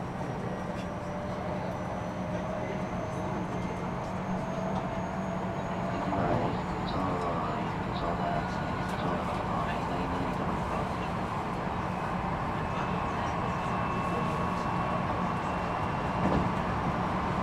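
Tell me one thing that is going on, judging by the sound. An electric train's motor hums and whines steadily as the train runs.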